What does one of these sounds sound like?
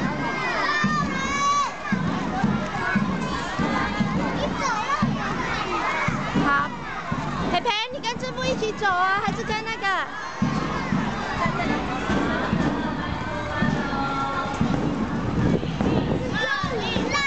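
Young children chatter and shout excitedly close by.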